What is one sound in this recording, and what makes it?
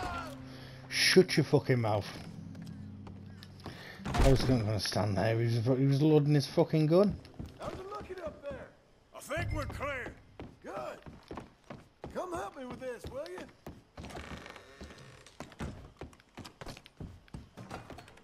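Boots thud on creaky wooden floorboards.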